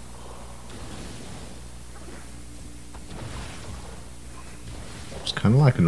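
A mining laser hums as it fires.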